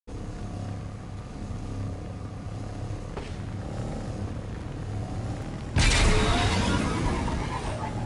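A hover bike's engine hums steadily.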